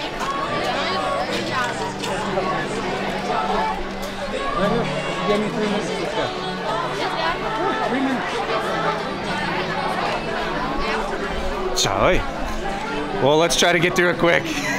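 A crowd of shoppers chatters all around indoors.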